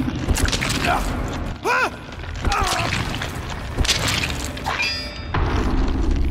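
A monstrous creature shrieks and screeches.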